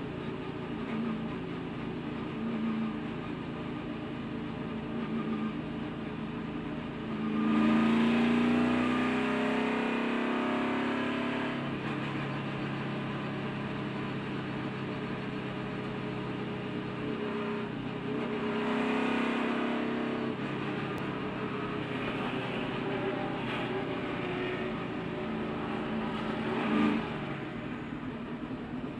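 A race car engine roars loudly from close by.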